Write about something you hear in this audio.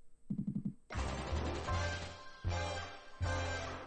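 A slot machine plays a bright winning jingle.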